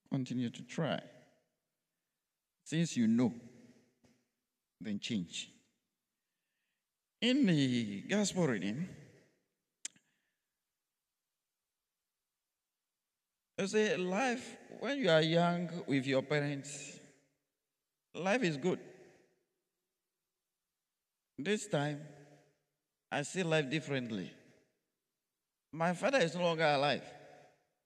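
A man speaks into a microphone in short, measured phrases with pauses between them.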